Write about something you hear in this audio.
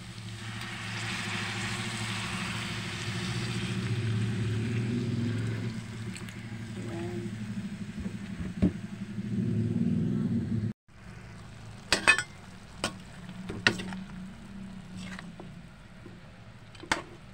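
Meat sizzles and crackles in a hot pan.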